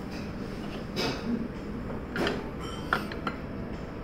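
A ceramic plate clinks against another plate.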